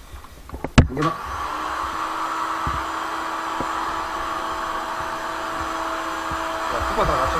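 A vacuum cleaner switches on and runs with a steady whirring whine.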